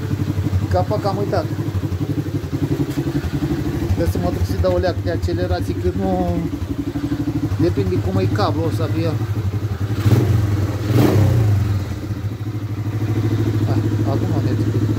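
A quad bike engine idles nearby with a steady, fast throb.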